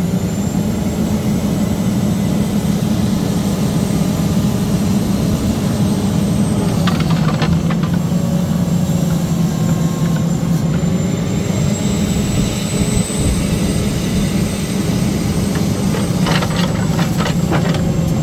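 A diesel engine of a log loader hums steadily close by.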